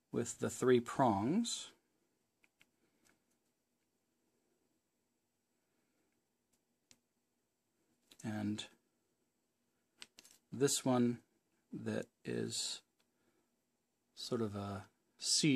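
A small plastic part clicks softly as it is pressed together by hand.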